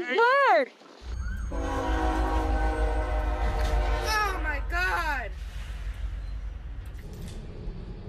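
A diesel freight train rumbles past.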